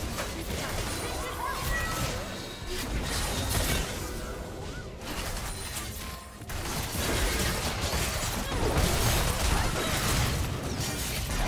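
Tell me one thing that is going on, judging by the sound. Video game spells blast and crackle during a fight.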